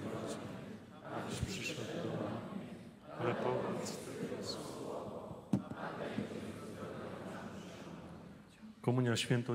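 An elderly man speaks calmly through a microphone in a large echoing hall.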